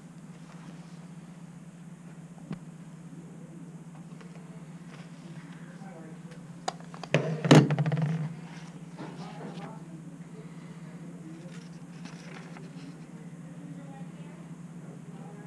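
Paper pages rustle as a book is handled and leafed through.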